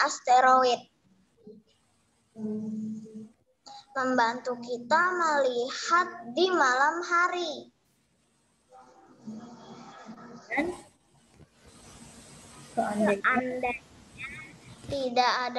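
A child speaks with animation over an online call.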